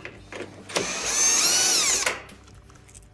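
A cordless drill whirs as it spins screws out of metal.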